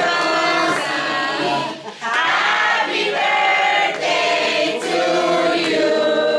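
A small group of women and men sing together cheerfully up close.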